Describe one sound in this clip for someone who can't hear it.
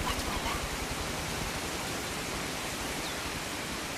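A stream of water flows and burbles.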